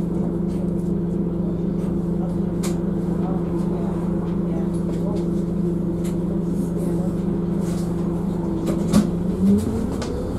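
A bus engine idles with a low, steady hum.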